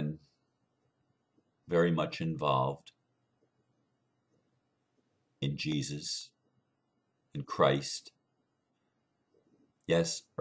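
An older man speaks slowly and calmly, close to the microphone, with pauses between phrases.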